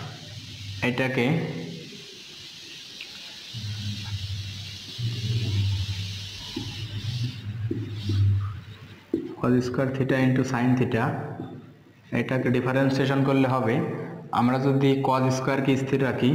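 A young man explains calmly, close by.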